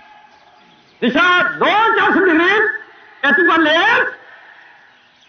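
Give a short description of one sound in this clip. A man shouts loud drill commands outdoors.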